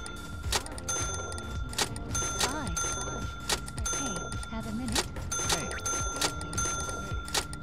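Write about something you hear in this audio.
A checkout scanner beeps repeatedly.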